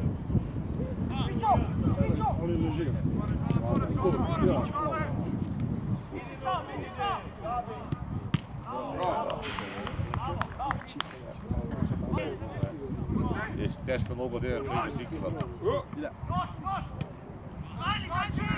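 Young men shout to each other across an outdoor football pitch.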